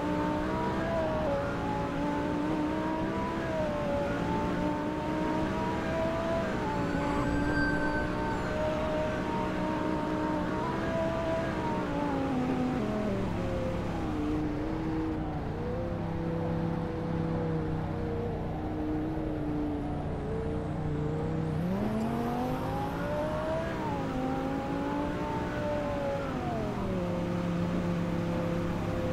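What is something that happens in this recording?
A sports car engine roars steadily, its pitch rising and falling as the car speeds up and slows down.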